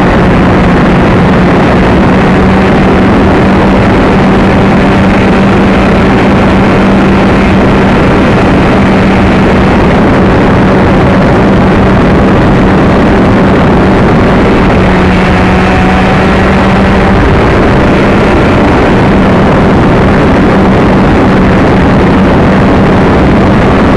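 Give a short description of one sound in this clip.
An electric motor whines steadily up close, loud and buzzing.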